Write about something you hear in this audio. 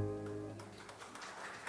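An acoustic guitar's strings ring out briefly.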